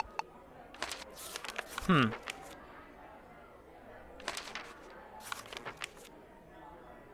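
Book pages flip and rustle in quick swishes.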